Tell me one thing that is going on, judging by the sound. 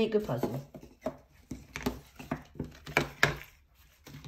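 Small cardboard books tap and clack against a table.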